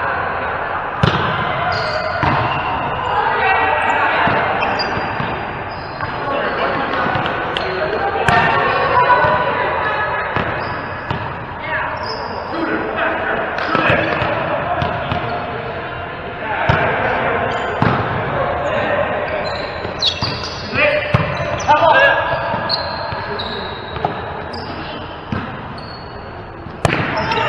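A volleyball is struck by hands in an echoing hall.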